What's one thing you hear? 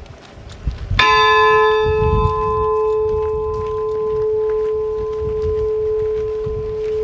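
A large bell is struck once and rings out with a long, slowly fading tone.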